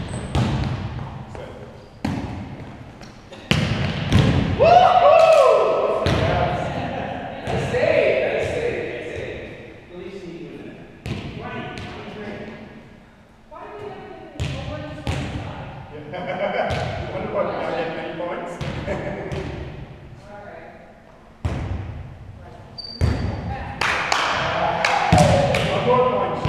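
A ball thumps hard and echoes through a large hall.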